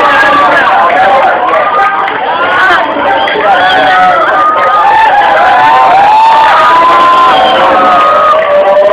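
A crowd of young people cheers and shouts loudly in an echoing hall.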